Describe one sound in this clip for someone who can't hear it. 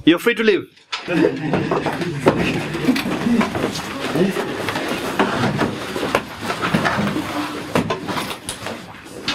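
Several young people talk and move about noisily.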